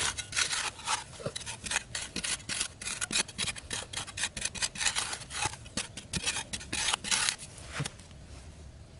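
A metal bar scrapes and digs into sandy soil.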